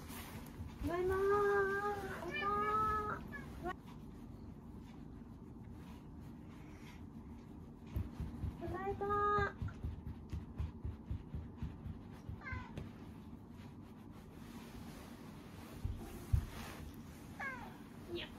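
A cat meows loudly several times, close by.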